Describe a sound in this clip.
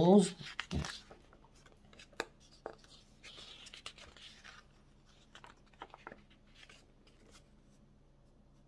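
Paper pages rustle as a magazine is leafed through.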